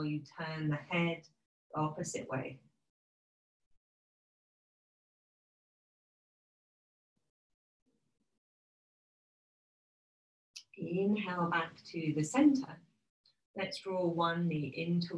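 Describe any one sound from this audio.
A woman speaks calmly and clearly into a close microphone, pausing between phrases.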